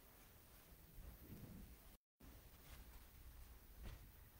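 Footsteps approach across the floor.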